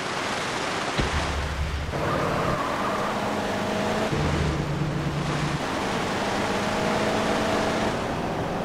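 A car engine hums as a car drives off.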